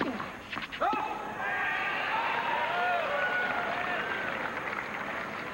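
A crowd in a large stadium claps and cheers.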